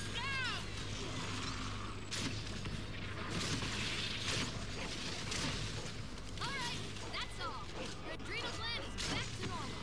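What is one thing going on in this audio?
A large monster roars and snarls nearby.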